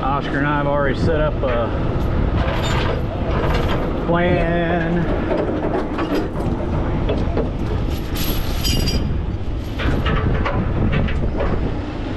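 A large truck engine rumbles steadily nearby.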